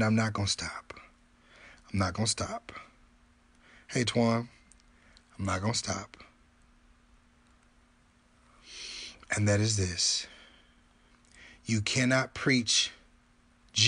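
A man speaks calmly and close up, in short bursts with pauses.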